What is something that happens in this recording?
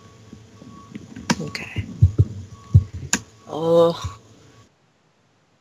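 A teenage boy speaks casually over an online call.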